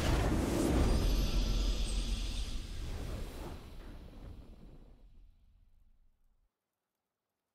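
A triumphant victory fanfare plays and fades out.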